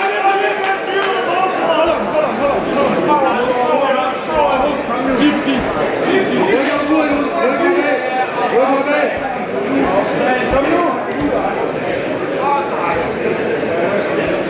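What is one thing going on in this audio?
A crowd of men and women shouts and cheers loudly all around, close by.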